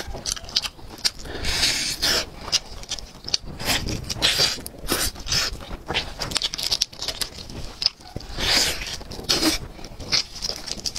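A young woman chews and smacks her lips loudly, close to a microphone.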